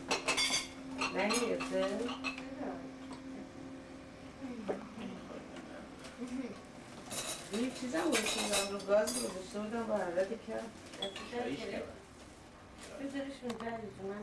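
Women and men talk nearby.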